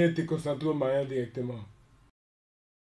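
A man speaks calmly, close to a microphone.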